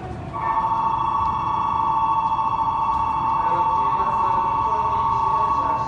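A crowd murmurs and shuffles in a large echoing hall.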